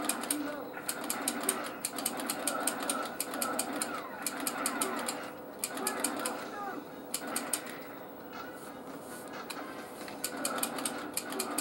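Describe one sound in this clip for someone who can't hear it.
Rapid video game gunfire plays through a small television speaker.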